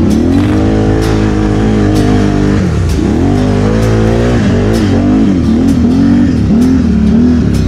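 A quad bike engine revs up and down close by.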